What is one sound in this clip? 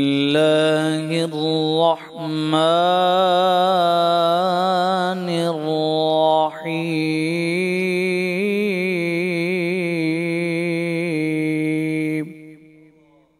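A man chants melodically in a long drawn-out voice through a microphone, with a slight echo.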